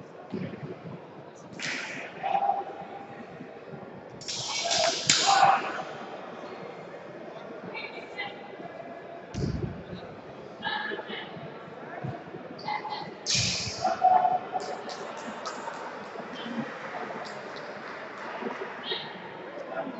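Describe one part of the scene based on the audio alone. Voices of a crowd of young people echo around a large hall.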